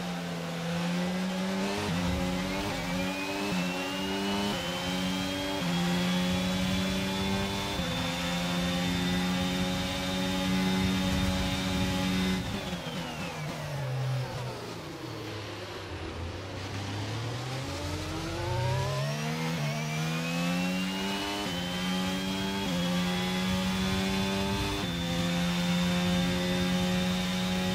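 A racing car engine screams loudly, shifting up through the gears as it accelerates.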